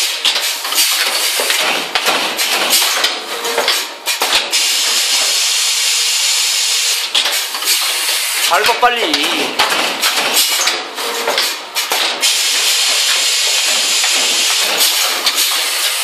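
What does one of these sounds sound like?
A machine's moving parts clack and clatter sharply.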